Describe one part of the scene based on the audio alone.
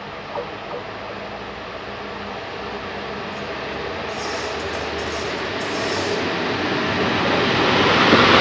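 An electric train approaches along the tracks, its rumble growing louder.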